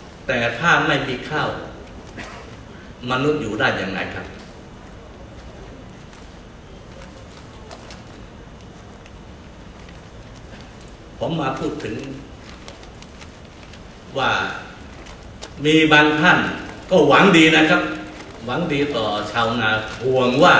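An elderly man speaks slowly and formally through a microphone and loudspeakers, with pauses.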